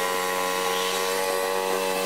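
A small tractor engine drones steadily in the distance.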